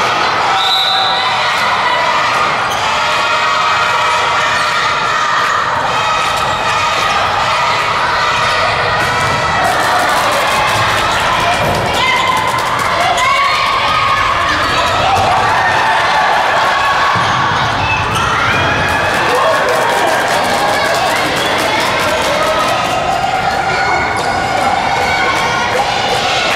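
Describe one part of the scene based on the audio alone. Sports shoes squeak sharply on a hard floor.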